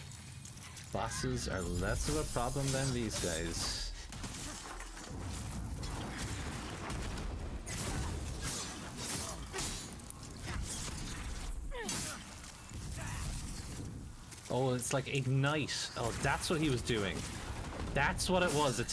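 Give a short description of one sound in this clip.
Sword blows clash and thud in a fight.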